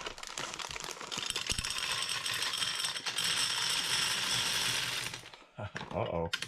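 Candies rattle and patter as they pour into a glass jar.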